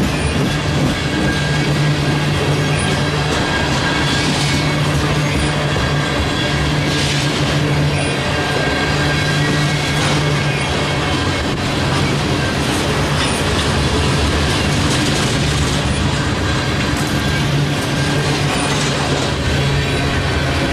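A freight train rumbles and rattles past close by.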